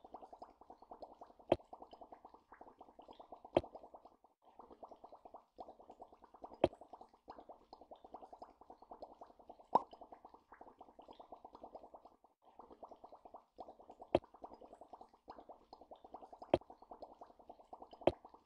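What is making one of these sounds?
Bubbles pop and burble in a quick, steady stream.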